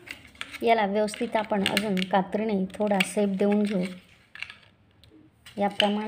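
Scissors snip through crinkling plastic.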